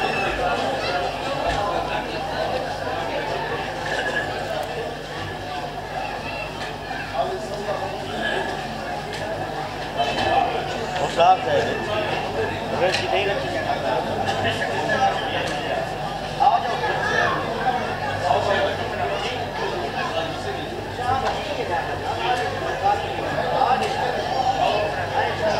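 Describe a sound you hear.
A man speaks with animation through a microphone, echoing in a large hall.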